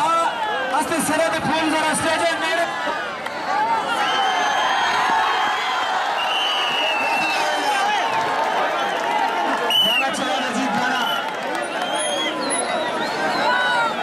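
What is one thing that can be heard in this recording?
A large outdoor crowd cheers and shouts.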